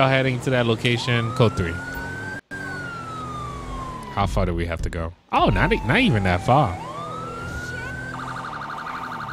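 A police siren wails, rising and falling.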